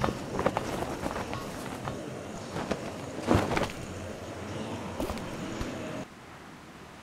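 Wooden boards creak and knock underfoot.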